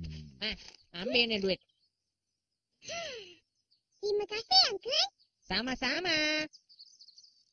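A young boy speaks with animation in a cartoon voice.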